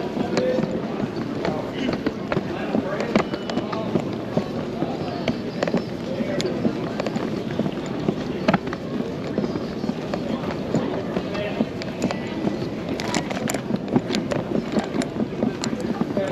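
Many people talk in a low murmur in a large echoing hall.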